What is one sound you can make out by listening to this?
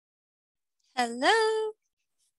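A young girl speaks briefly into a headset microphone over an online call, her voice rising.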